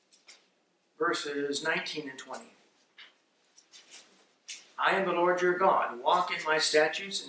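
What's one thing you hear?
A man speaks calmly into a microphone, reading out.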